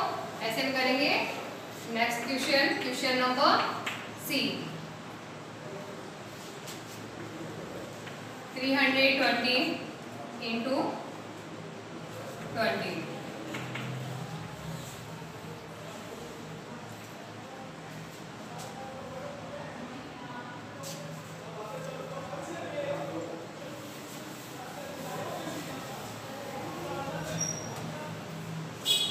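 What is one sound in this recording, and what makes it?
A woman speaks clearly and calmly, as if teaching.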